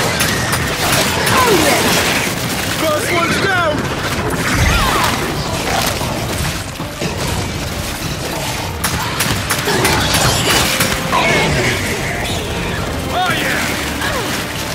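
Monsters screech and snarl.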